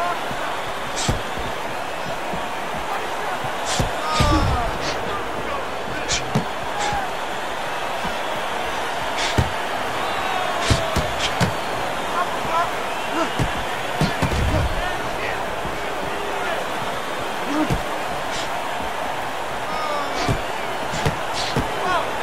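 Punches land with sharp thuds.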